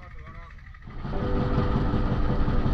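A boat engine hums steadily over the water.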